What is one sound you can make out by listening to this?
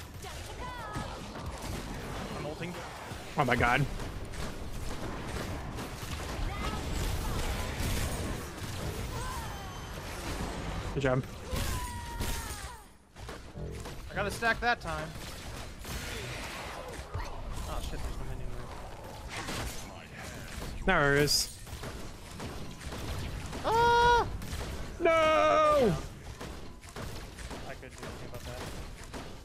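Blasts and magical effects crackle and boom in quick bursts.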